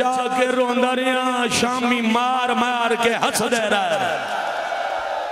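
A middle-aged man chants loudly and passionately into a microphone, his voice carried through loudspeakers.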